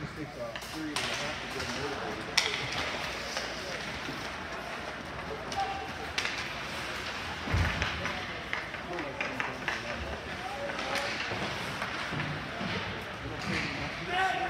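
Hockey sticks clack against a puck and each other.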